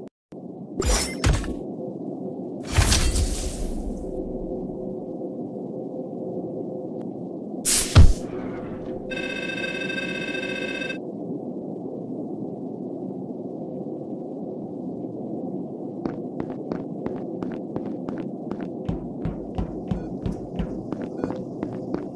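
Steady game music plays throughout.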